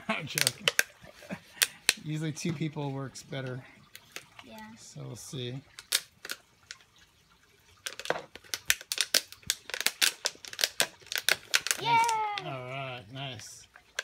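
A plastic bag crinkles and rustles in hands.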